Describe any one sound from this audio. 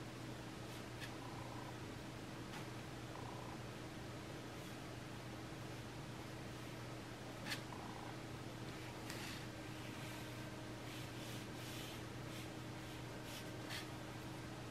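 A paintbrush clicks and taps against a paint palette.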